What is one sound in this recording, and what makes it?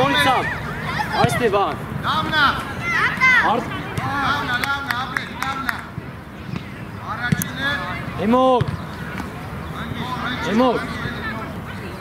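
Children shout loudly outdoors, their voices carrying across an open field.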